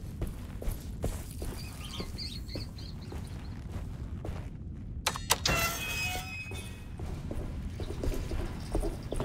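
Footsteps walk steadily across a stone floor.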